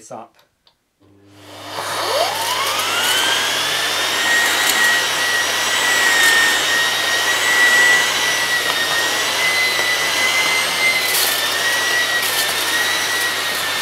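A vacuum cleaner switches on, its motor whining up to a steady roar.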